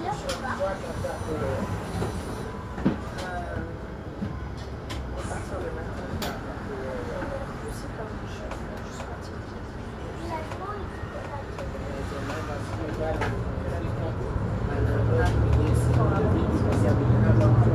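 Passing cars and a scooter rush by on the road.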